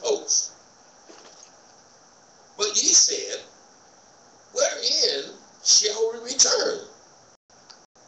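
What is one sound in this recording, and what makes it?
An older man speaks slowly and calmly into a microphone in a large room.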